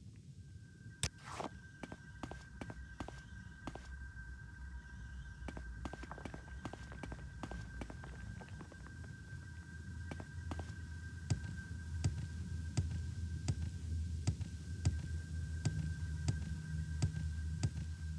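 Footsteps crunch steadily on hard rocky ground.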